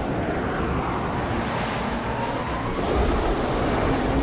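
A jet aircraft hovers close by with a loud, rising engine roar.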